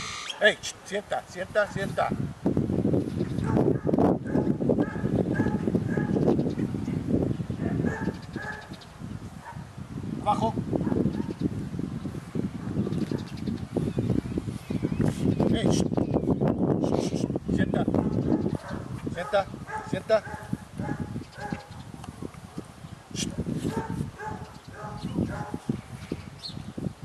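A man gives commands to a dog in a calm, firm voice.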